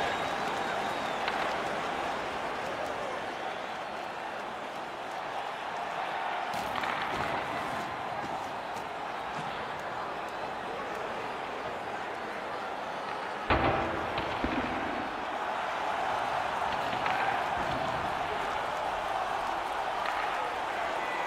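A large crowd murmurs and cheers steadily in an echoing arena.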